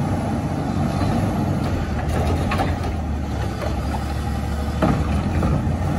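A garbage truck's hydraulic arm whines as it lifts a bin.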